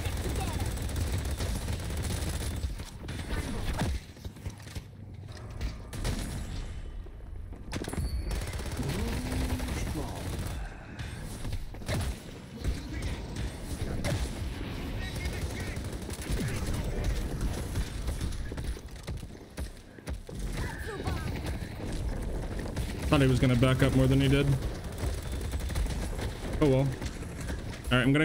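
Gunshots and weapon blasts fire rapidly.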